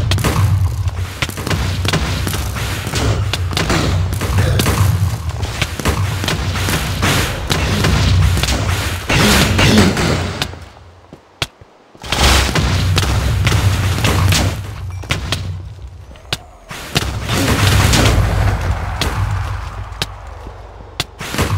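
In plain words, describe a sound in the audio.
Sword blows land with sharp, repeated hits.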